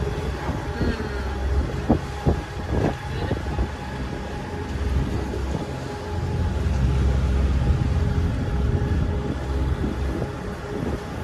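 Wind rumbles and buffets loudly outdoors.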